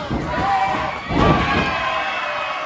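A wrestler slams down onto a wrestling ring mat with a loud thud.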